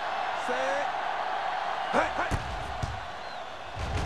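A football is kicked with a thump.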